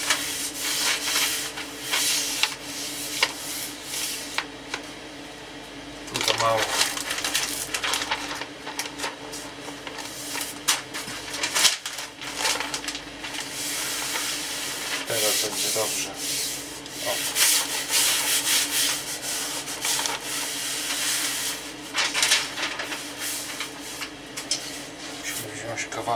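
A thin wooden sheet rustles and crackles as it bends.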